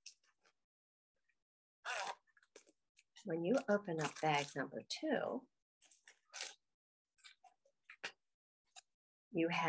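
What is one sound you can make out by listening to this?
Paper crinkles and rustles in a woman's hands.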